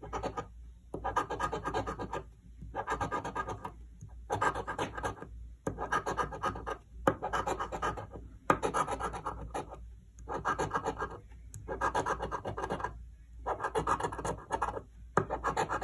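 A coin scratches rapidly across a card in repeated bursts.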